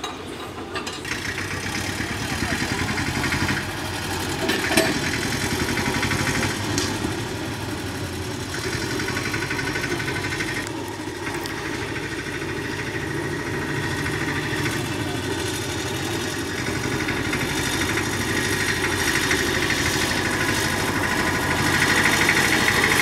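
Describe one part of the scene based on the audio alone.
A small diesel locomotive engine chugs steadily, growing louder as it approaches.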